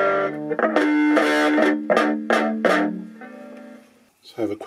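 Electric guitar strings ring and wobble in pitch as a tremolo arm is pressed.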